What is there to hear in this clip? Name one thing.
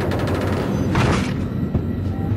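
A body thuds onto a hard floor.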